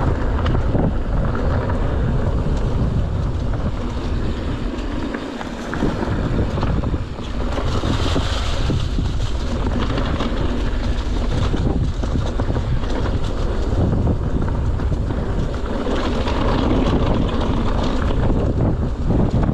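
A bike's chain and frame clatter over bumps.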